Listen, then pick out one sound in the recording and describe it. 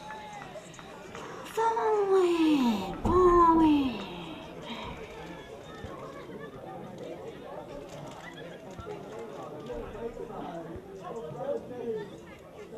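Men call out and chatter at a distance outdoors.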